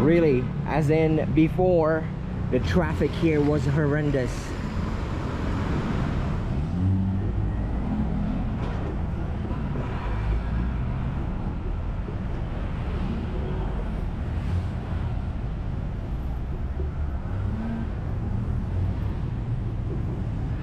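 Traffic hums steadily on a busy road.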